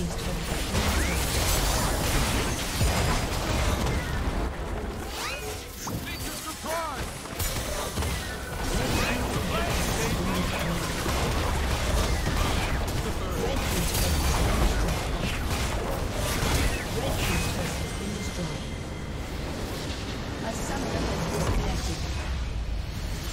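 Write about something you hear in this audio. Game spell effects crackle and burst rapidly during a battle.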